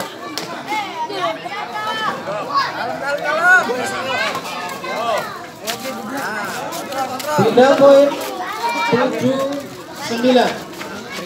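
A crowd of men talk and shout outdoors.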